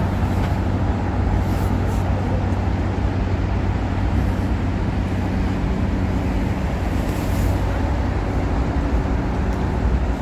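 A diesel engine idles with a steady low rumble nearby.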